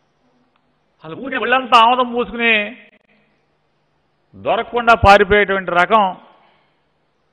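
A middle-aged man speaks firmly into a microphone in short bursts.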